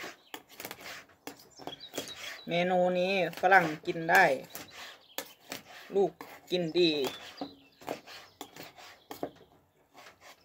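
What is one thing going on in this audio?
A knife taps and scrapes on a cutting board.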